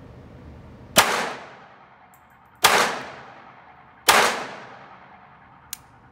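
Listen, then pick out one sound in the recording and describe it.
A pistol fires three loud shots close by, each ringing out with a short echo.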